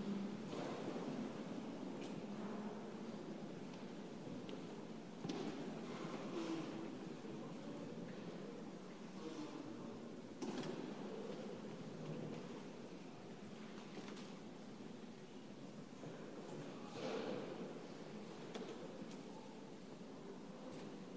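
A man speaks in a large echoing church.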